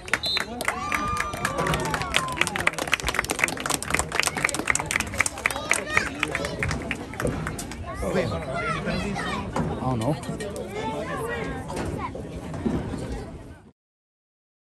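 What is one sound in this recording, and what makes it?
A crowd of spectators cheers and shouts nearby, outdoors.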